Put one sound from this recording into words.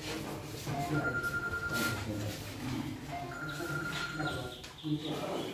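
A voting machine beeps in short, steady tones.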